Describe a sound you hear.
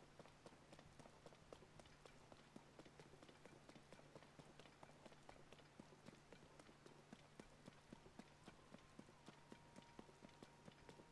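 Heavy rain falls steadily.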